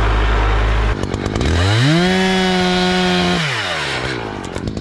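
A chainsaw revs up and cuts through wood.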